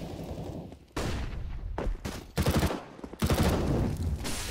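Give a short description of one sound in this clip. A submachine gun fires rapid bursts of shots.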